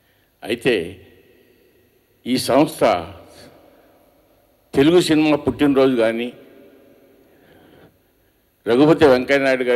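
An older man speaks with pauses into a microphone, heard through a loudspeaker in an echoing room.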